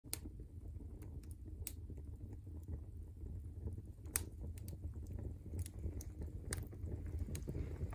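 A wood fire roars with a low rumble.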